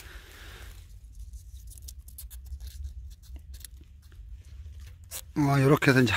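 A hand brushes and scrapes loose sawdust across rough bark.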